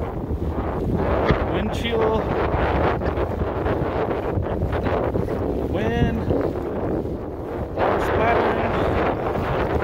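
Strong wind gusts across open water.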